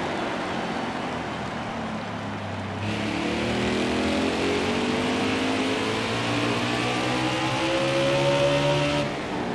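Race car engines roar at high speed, rising steadily in pitch.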